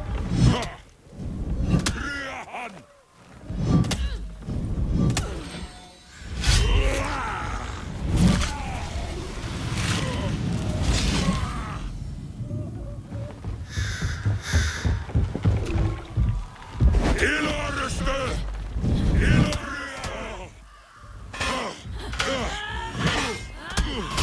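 Metal blades clash and strike in a fight.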